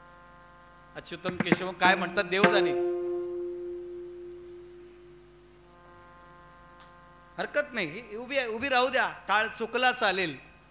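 A man speaks with animation into a microphone over a loudspeaker, his voice echoing.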